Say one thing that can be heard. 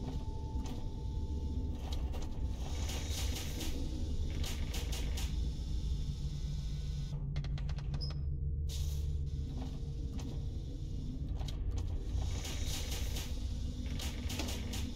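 Wooden drawers slide open and shut with soft rattling clicks.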